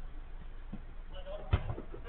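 A football thuds as it is kicked.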